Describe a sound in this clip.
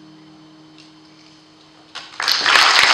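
A guitar chord rings out softly and fades.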